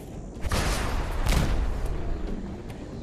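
A heavy gun fires loud bursts.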